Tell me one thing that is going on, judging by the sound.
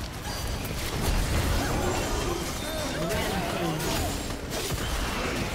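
Magic blasts and hits crackle and boom in a fast fight.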